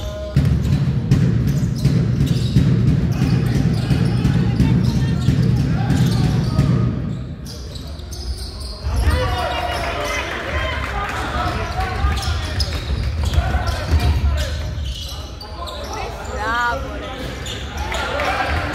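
Basketball shoes squeak on a hardwood court in a large echoing gym.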